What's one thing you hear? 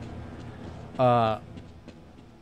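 A young man makes a short exclamation close to a microphone.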